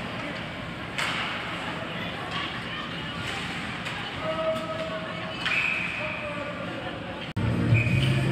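A hockey stick slaps a puck.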